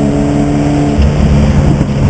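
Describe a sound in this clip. The engine drops in pitch as the driver changes gear.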